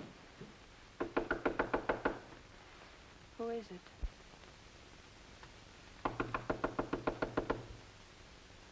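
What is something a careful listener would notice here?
Knuckles knock rapidly on a wooden door.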